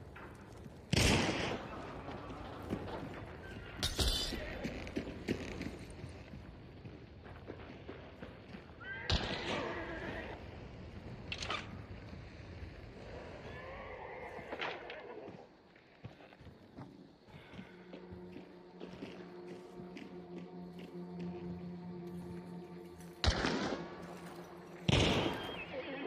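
A shotgun fires with loud, sharp blasts.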